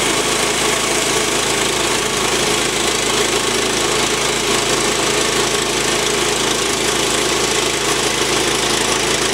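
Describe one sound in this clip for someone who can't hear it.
A petrol engine drones steadily.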